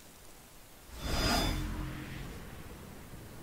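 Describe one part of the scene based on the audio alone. A shimmering magical whoosh swells up and slowly fades.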